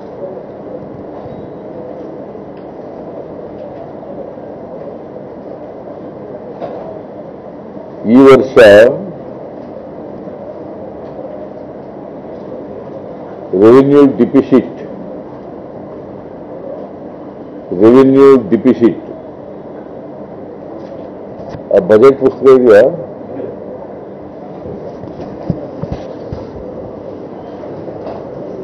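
A man speaks calmly into microphones.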